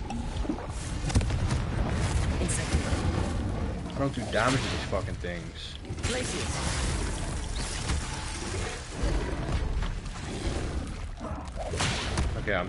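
Magic spells crackle and zap repeatedly.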